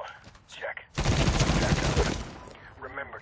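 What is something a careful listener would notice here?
A rifle fires a rapid burst of shots up close.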